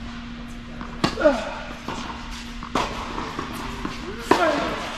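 Tennis balls are struck sharply back and forth, echoing in a large indoor hall.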